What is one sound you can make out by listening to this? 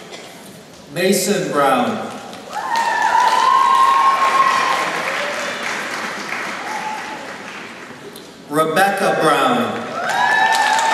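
A man reads out names through a loudspeaker in a large echoing hall.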